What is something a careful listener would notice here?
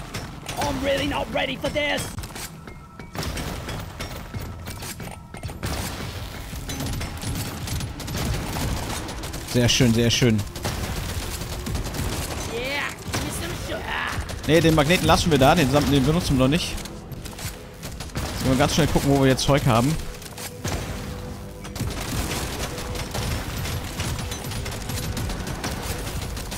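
Rapid gunfire and blasts crackle throughout.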